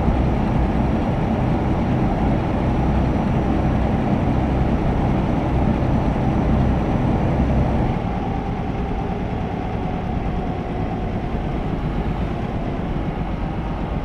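A truck engine hums steadily while driving on a road.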